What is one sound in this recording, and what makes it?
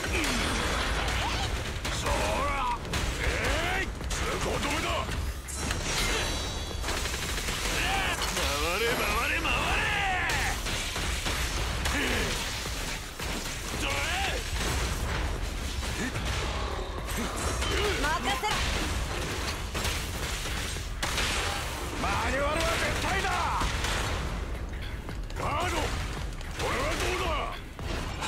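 Heavy metallic impacts and energy blasts crash repeatedly.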